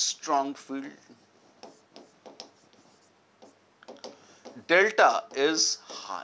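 A marker squeaks on a board.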